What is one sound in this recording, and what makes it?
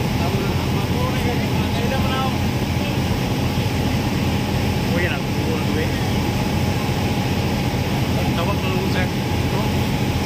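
Young men talk quietly nearby.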